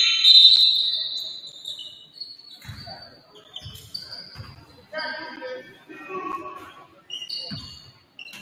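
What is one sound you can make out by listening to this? Sneakers squeak on the hardwood floor.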